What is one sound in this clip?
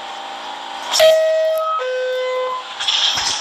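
A two-tone door chime sounds from a train at a station.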